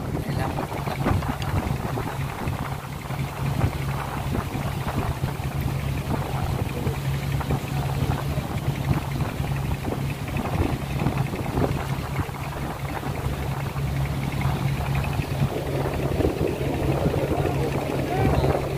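Water splashes and rushes past a moving boat.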